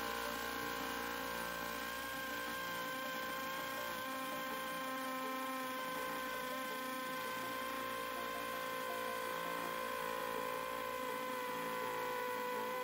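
A power drill whines steadily as it bores into concrete.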